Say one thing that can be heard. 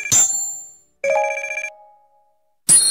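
A game jingle chimes as points tally up.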